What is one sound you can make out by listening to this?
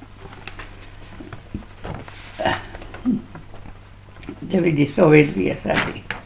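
Paper sheets rustle and crinkle close by.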